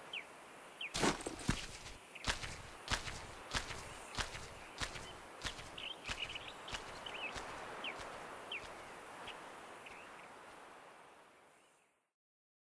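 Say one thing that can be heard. Footsteps tread at a steady pace on stone.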